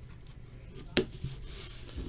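Cards tap softly against a mat.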